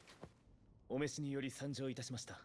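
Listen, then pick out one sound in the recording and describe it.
A young man speaks calmly and respectfully.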